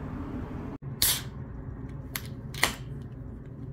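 A drink can is cracked open with a sharp hiss.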